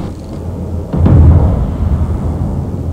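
Heavy guns boom with a loud blast.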